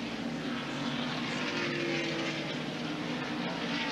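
Race car engines roar steadily in the distance.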